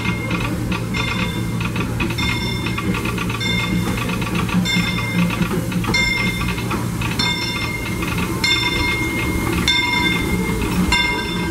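A locomotive bell clangs repeatedly.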